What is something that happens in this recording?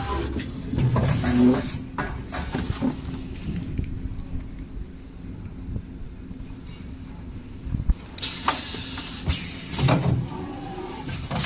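Air hisses in sharp bursts from the machine.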